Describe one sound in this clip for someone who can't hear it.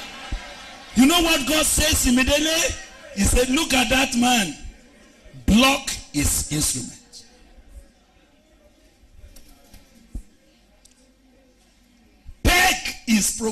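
A man preaches loudly and with animation through a microphone in a large echoing hall.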